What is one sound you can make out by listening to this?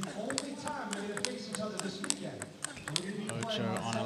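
A table tennis ball clicks sharply back and forth off paddles and a table.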